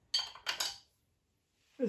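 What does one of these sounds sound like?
A ratchet wrench clicks a few times.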